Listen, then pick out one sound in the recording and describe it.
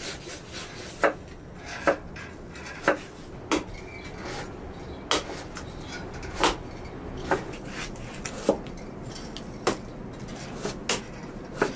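A knife scrapes sharply across a fish's skin in quick, repeated strokes.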